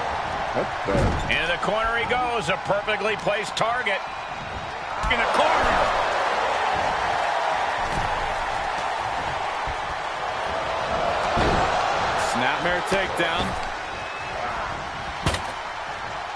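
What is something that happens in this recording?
Heavy thuds ring out as wrestlers slam each other on the ring.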